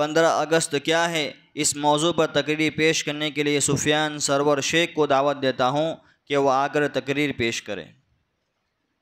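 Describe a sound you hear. A boy chants melodically into a microphone, heard through a loudspeaker.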